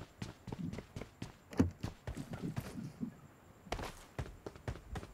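Running footsteps thud quickly on the ground.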